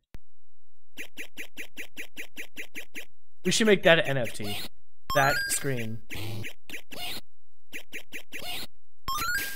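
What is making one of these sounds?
Arcade game sounds beep in quick, even bursts.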